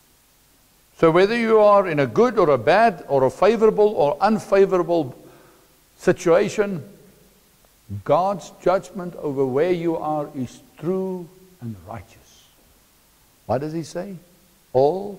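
A middle-aged man speaks with animation through a clip-on microphone.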